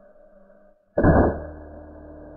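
An air rifle fires a single sharp shot close by.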